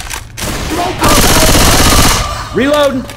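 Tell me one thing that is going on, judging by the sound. A shotgun fires in rapid blasts.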